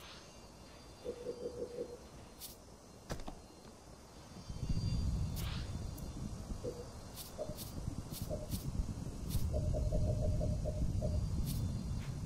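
Short electronic menu beeps tick as settings change.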